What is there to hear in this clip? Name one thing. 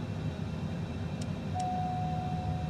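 A cockpit switch clicks.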